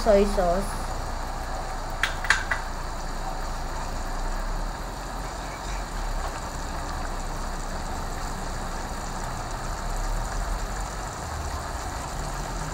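Meat sizzles steadily in a hot pan.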